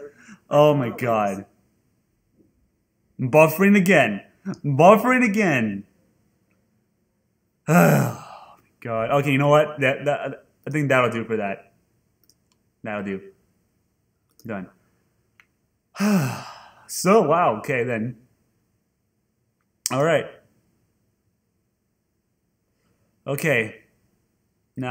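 A young man talks with animation into a close microphone, with pauses between phrases.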